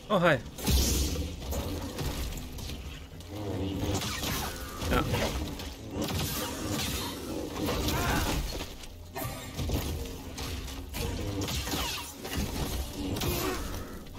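A laser sword hums and swishes.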